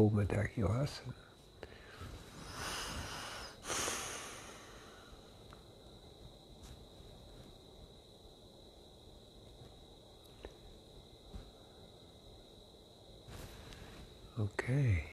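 An elderly man speaks calmly, close to the microphone.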